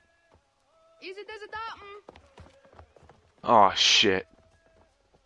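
A boy speaks clearly and close up.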